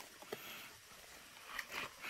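A hand crackles and breaks apart rotten wood.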